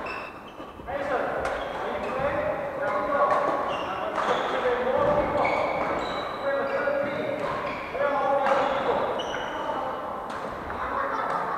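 Men's voices call out and chatter across a large echoing hall.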